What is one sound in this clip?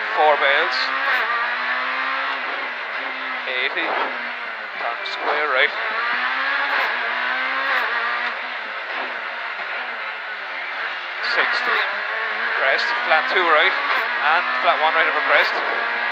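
A rally car engine roars and revs hard, its pitch rising and dropping with each gear change.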